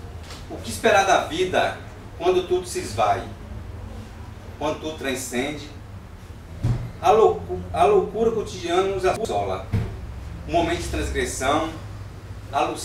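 A young man recites with expression, close by.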